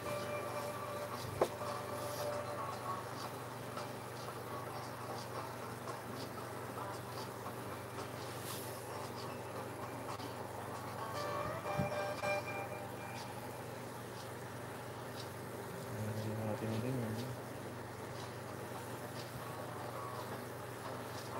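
A paintbrush dabs and brushes softly on canvas.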